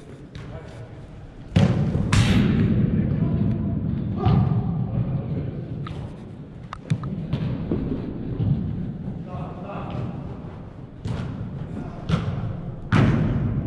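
Men shout and call out to each other in an echoing hall.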